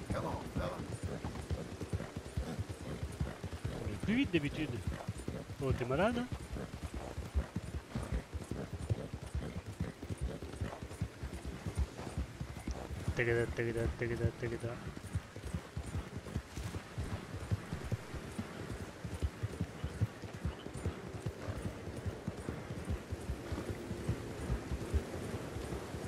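A horse gallops with steady hoofbeats on soft ground.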